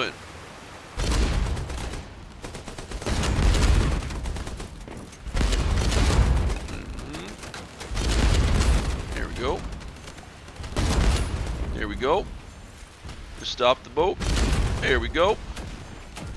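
Machine guns fire in loud, rapid bursts.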